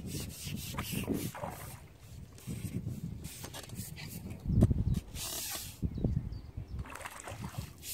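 A fish splashes at the surface of the water close by.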